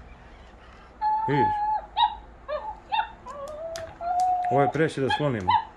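A toy dog plays electronic beeping tones.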